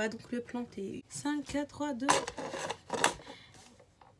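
A plastic lid clicks onto a cup.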